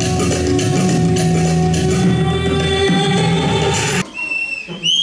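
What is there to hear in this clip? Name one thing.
Upbeat music plays loudly through loudspeakers.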